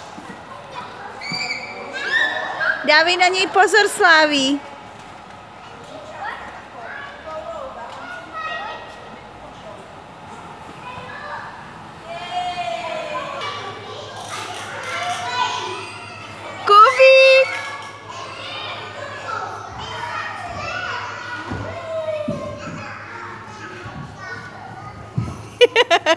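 Young children shout and squeal with excitement close by.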